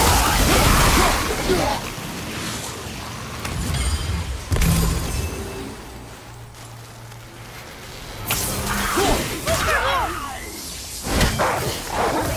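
An axe strikes with heavy, sudden blows.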